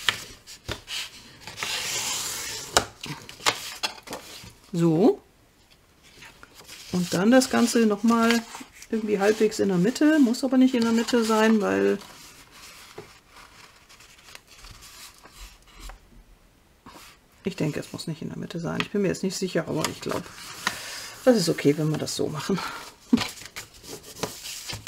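Paper rustles and crinkles as hands handle it.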